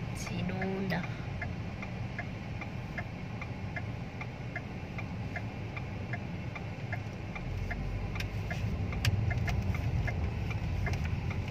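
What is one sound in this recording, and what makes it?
A turn signal ticks rapidly inside the car.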